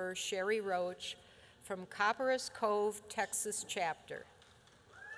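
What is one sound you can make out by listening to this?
An elderly woman speaks calmly into a microphone.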